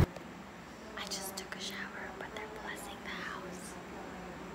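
A young woman whispers close by.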